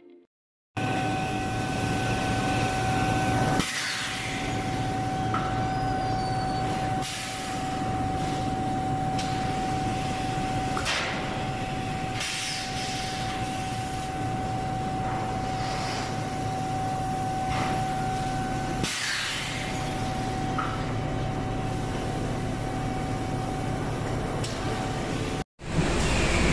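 A metal conveyor clanks and hums steadily.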